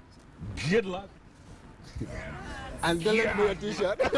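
A man laughs heartily into a microphone.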